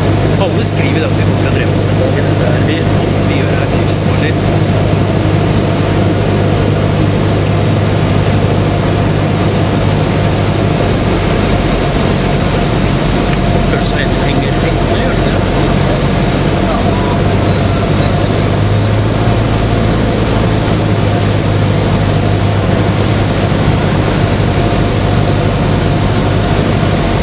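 Wind rushes loudly past the plane.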